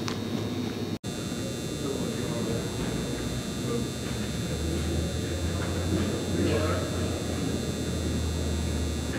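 Feet thud on a padded floor as a man lands from a jump.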